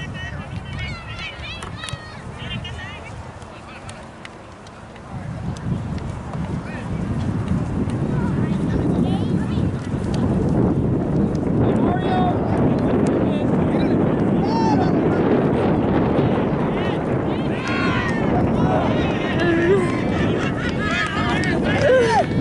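Spectators shout and cheer from the sidelines.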